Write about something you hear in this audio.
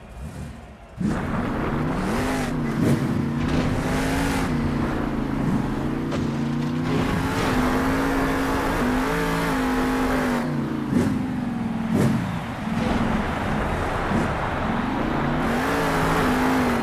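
A monster truck engine roars and revs up and down.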